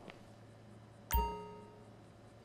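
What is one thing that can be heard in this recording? A glass clinks down on a hard counter with a short ring.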